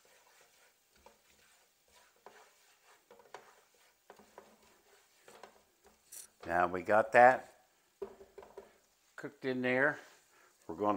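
A metal spatula scrapes and taps against a frying pan.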